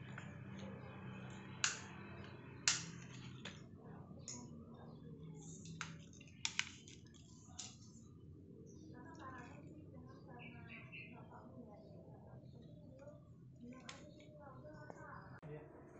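Plastic parts click and knock as hands handle an electrical socket.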